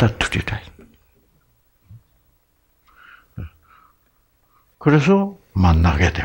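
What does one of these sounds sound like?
An elderly man speaks calmly through a headset microphone, with pauses.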